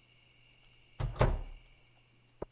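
A door thuds open.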